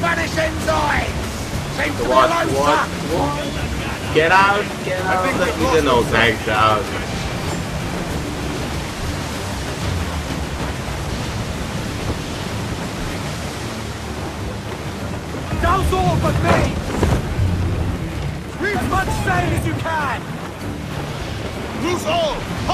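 Waves wash and surge steadily around a sailing ship.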